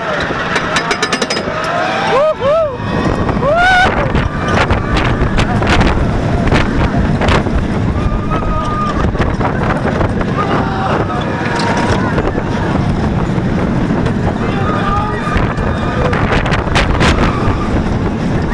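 A roller coaster rumbles and rattles loudly along its track.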